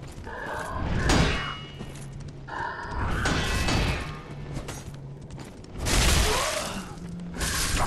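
Blades clash and strike in a fight.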